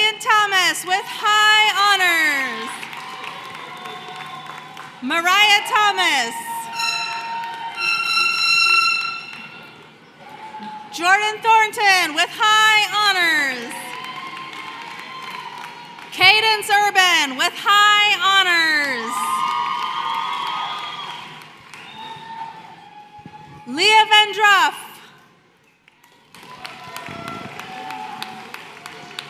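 An audience claps.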